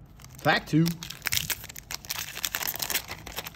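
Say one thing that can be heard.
A foil wrapper crinkles and rustles as hands tear it open.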